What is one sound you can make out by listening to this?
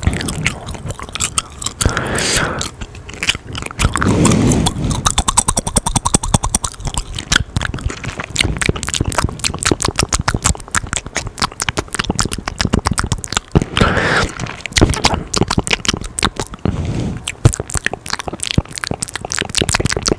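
A young man makes soft mouth clicks close to a microphone.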